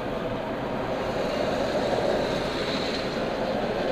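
A truck roars past close by.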